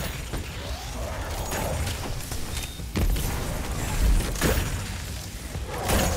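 Arrows strike an enemy with loud impacts.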